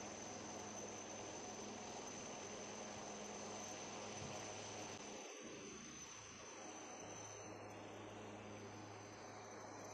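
A powerful water jet roars and sprays steadily.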